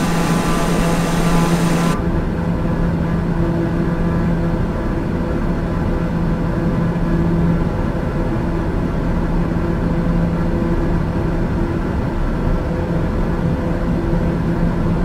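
An aircraft engine drones steadily, loud and bright at first, then muffled as if heard from inside the cabin.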